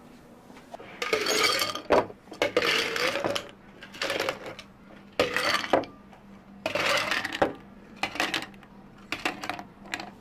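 Ice cubes clatter into glass jars.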